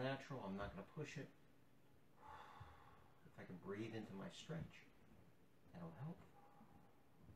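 A man talks calmly in a small, slightly echoing room.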